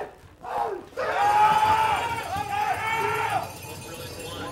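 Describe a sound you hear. A crowd cheers and yells loudly.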